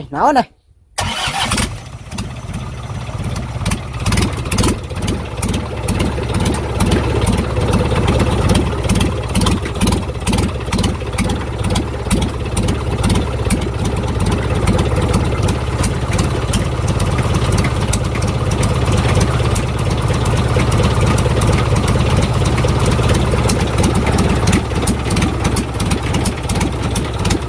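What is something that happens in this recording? A diesel engine starts and runs loudly with a fast, steady clatter.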